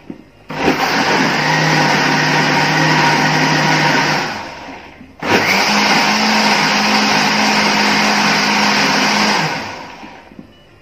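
A blender whirs loudly in short bursts.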